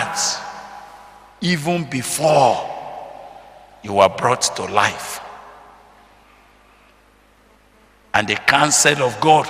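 A man preaches forcefully into a microphone in an echoing hall, his voice coming in loud bursts.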